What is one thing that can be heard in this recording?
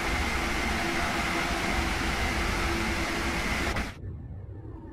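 A train roars along the tracks at speed, heard loudly from outside.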